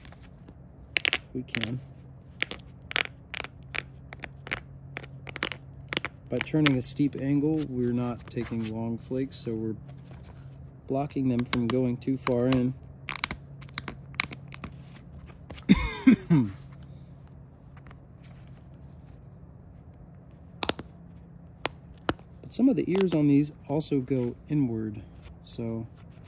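Sharp little clicks and snaps come as a bone tool presses flakes off a stone point.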